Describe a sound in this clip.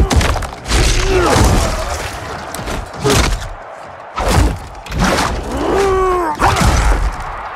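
A man grunts and cries out in pain.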